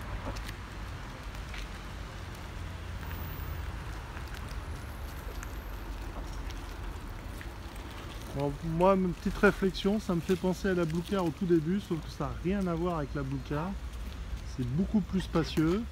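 A car rolls slowly over wet asphalt with a soft hiss of tyres.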